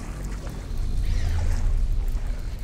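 A creature hisses and shrieks nearby.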